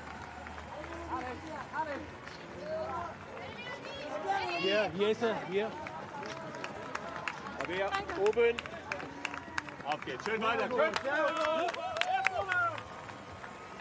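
A crowd of spectators cheers and shouts close by, outdoors.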